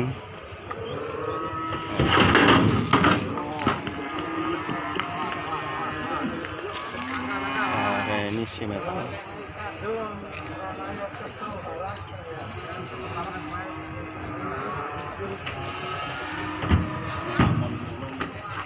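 A calf's hooves clatter and thump on a wooden truck bed.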